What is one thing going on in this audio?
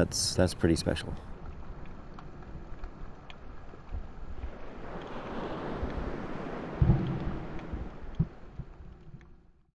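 Water swirls and bubbles, muffled underwater.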